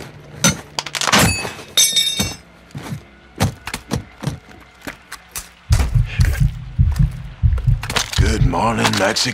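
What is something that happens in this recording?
Items clatter as they are picked up from a case.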